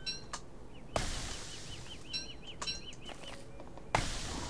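An axe chops into wood with sharp knocks.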